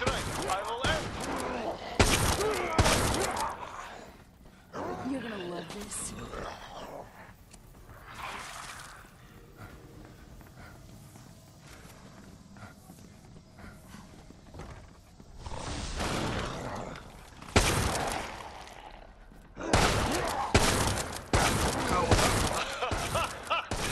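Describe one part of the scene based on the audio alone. A shotgun fires in loud, booming blasts.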